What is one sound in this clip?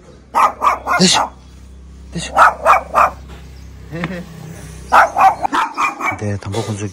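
A small dog barks sharply in quick bursts.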